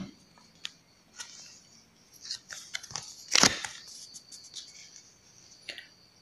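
Playing cards slide and tap as a card is picked up.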